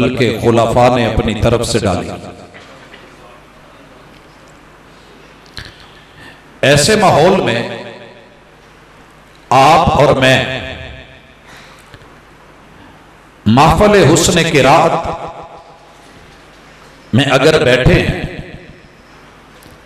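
A man chants in short, drawn-out phrases into a microphone, echoing in a reverberant room.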